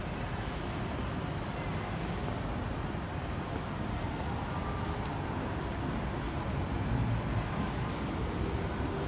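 Footsteps of people walking on pavement patter nearby.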